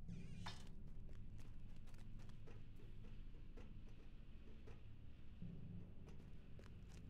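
Footsteps tap quickly on a hard floor.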